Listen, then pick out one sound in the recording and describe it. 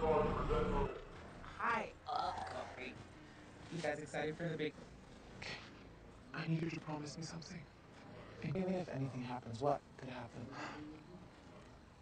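A young woman speaks in a hushed, tense voice.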